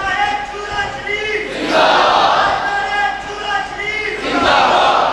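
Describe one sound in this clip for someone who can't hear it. A man chants in a high, drawn-out voice through a loudspeaker.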